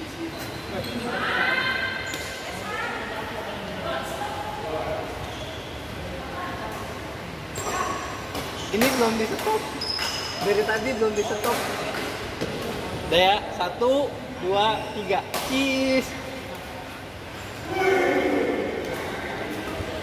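Sports shoes squeak sharply on the court floor.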